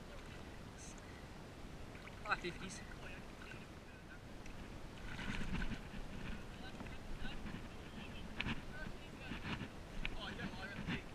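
Water laps gently against a stone wall.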